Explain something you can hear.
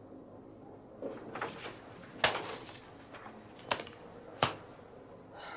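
Paper rustles and is laid down on a desk.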